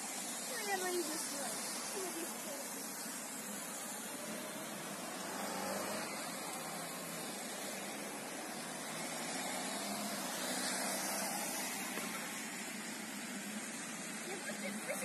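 Tyres hiss steadily on a wet road.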